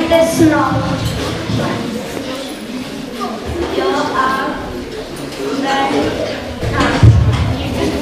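A young woman speaks to the children near the microphone.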